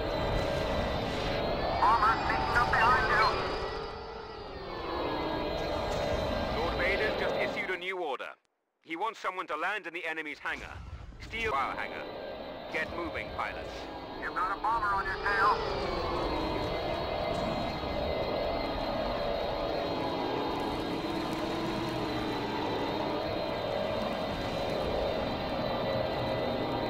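Starfighter engines roar steadily.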